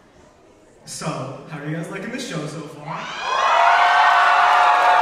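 A young man sings loudly into a microphone in a large echoing hall.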